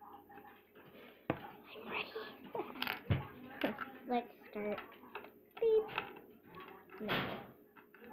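A small plastic toy taps against a wooden table.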